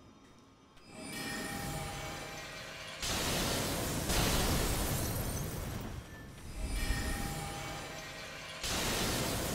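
Magic blasts burst with loud whooshing roars.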